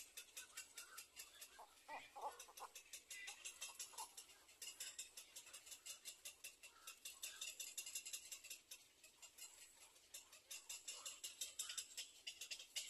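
Young birds chirp rapidly from a nest.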